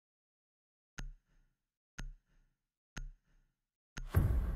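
A game countdown ticks with short beeps.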